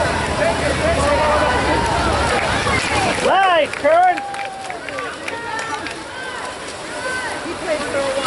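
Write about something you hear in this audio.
Young men and women shout and cheer from a distance.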